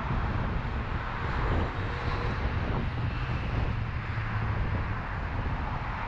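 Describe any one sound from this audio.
A motorcycle passes close by.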